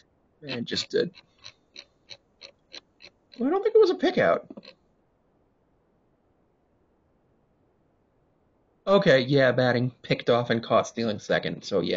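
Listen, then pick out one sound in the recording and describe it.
A young woman speaks casually and close to a microphone.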